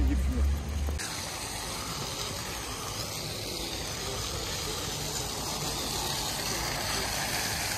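A fountain splashes steadily outdoors.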